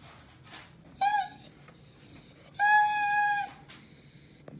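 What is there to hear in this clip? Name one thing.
A puppy yelps and whines in high, sharp bursts.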